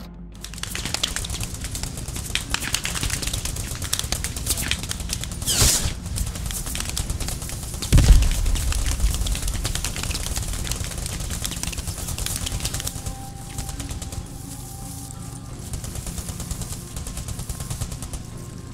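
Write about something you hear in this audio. Footsteps crunch and rustle through tall grass.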